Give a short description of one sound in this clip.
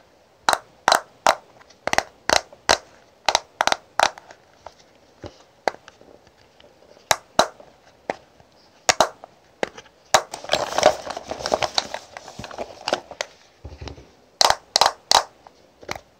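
Fingernails tap and click on a plastic compact.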